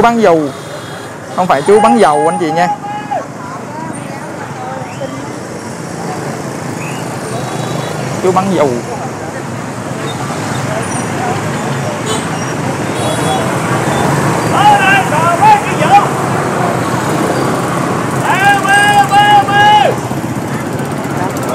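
Motorbike engines hum and pass by close.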